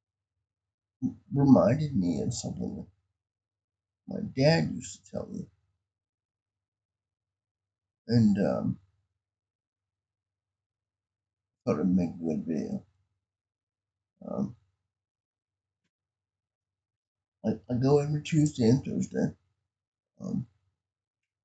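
A man speaks calmly in short bursts close to a microphone, with pauses between.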